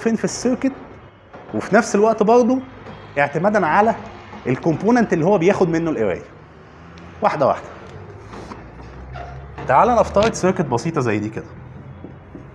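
A man lectures with animation.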